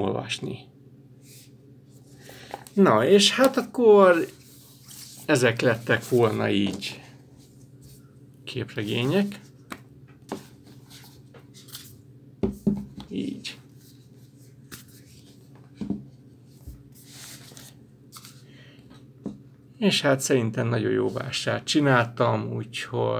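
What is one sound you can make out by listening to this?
Paper covers rustle.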